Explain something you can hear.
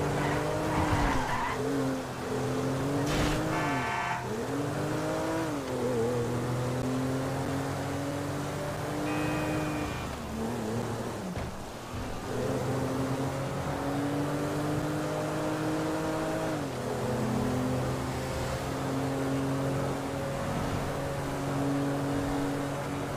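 A car engine hums steadily, rising and dipping in pitch as the car speeds along.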